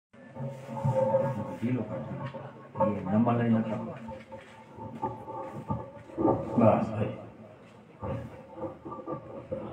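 An elderly man sings into a microphone, heard through a loudspeaker.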